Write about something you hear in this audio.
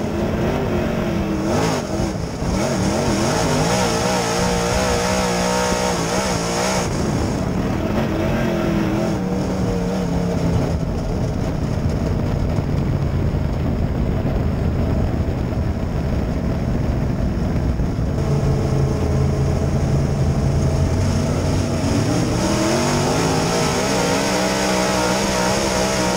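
A race car engine roars loudly up close, revving up and down through the corners.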